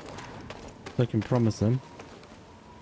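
A young man speaks briefly into a close microphone with animation.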